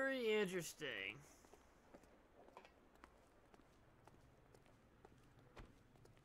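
Footsteps tap on a hard floor and pavement.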